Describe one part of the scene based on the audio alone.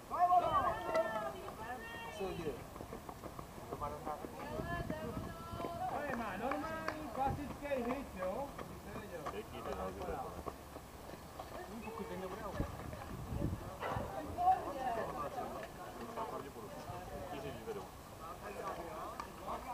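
Young players call out and chatter across an open outdoor field.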